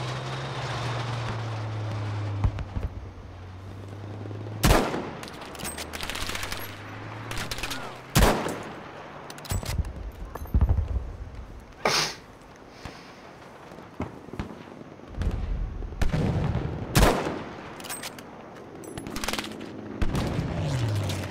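Distant gunfire and explosions rumble throughout.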